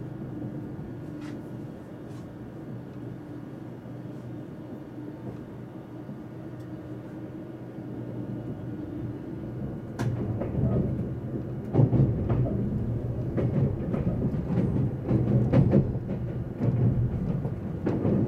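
A train hums and rumbles steadily as it moves along the track, growing louder as it speeds up.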